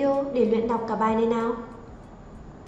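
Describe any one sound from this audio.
A woman speaks clearly and calmly into a microphone.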